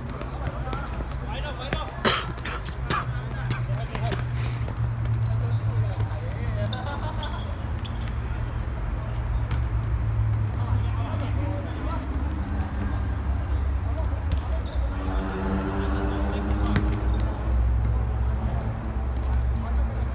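Players shout to each other across an open outdoor court.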